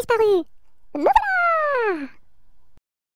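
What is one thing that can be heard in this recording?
A cartoon witch cackles with a long, falling laugh.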